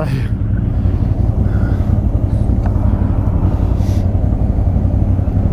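An all-terrain vehicle engine rumbles steadily up close.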